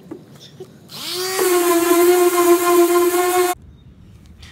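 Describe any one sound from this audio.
An electric sander whirs steadily with a high-pitched hum.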